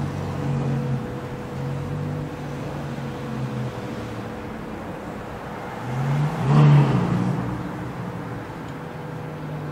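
A sports car engine rumbles deeply at low speed and revs up loudly.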